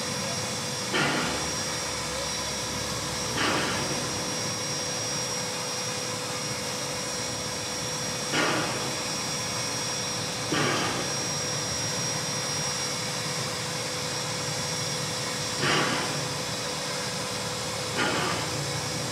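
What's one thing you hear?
A standing steam locomotive hisses.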